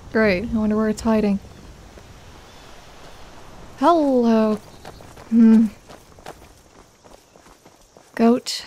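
Footsteps walk on stone.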